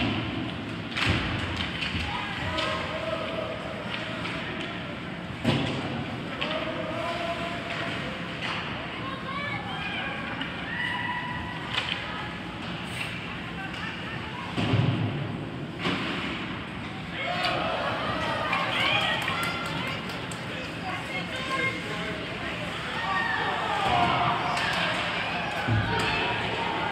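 Hockey sticks slap a puck in an echoing rink.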